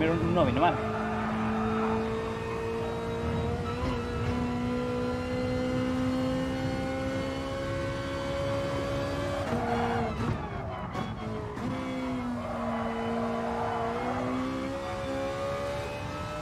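A racing car engine drones steadily, dropping in pitch as it brakes and rising again as it speeds up.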